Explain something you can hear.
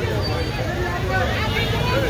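A motorcycle engine idles nearby.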